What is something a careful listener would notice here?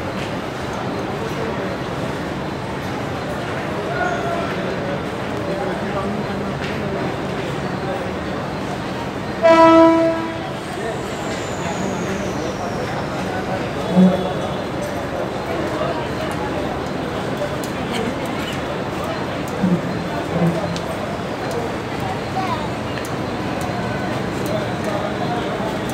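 A large crowd murmurs and chatters throughout.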